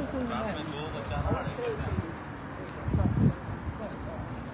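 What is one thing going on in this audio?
Wind blows outdoors against the microphone.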